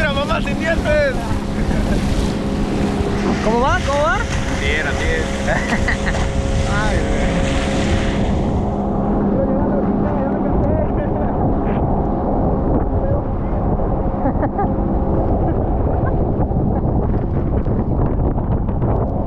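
Water rushes and splashes beside a speeding boat.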